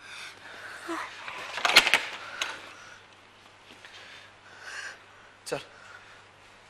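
A woman sobs and cries out.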